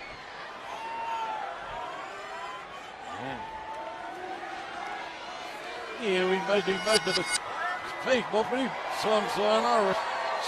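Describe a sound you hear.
A large crowd cheers and shouts in a big echoing arena.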